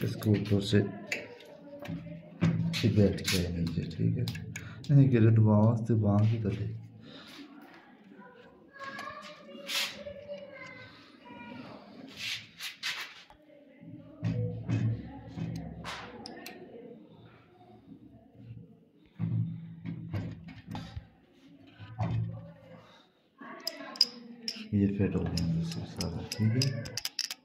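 Metal parts clink and tap as an engine pump is handled.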